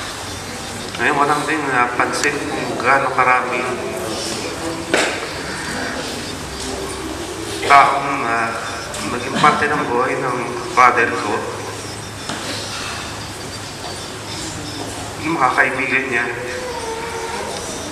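A man speaks in short bursts into a microphone, heard through a loudspeaker in an echoing hall.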